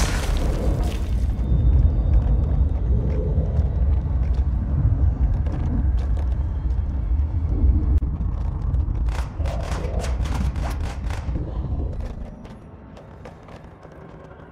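Small chunks of rubble clatter and smash.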